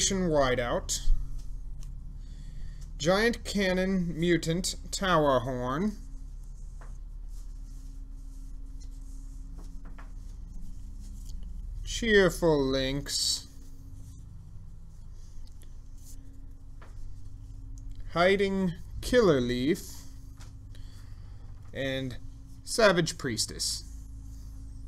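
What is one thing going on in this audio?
Playing cards are laid down softly on a cloth mat.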